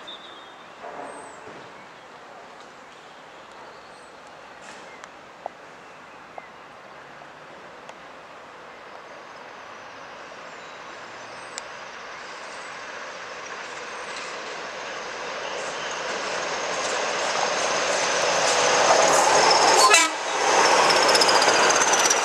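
A diesel locomotive rumbles closer, growing steadily louder.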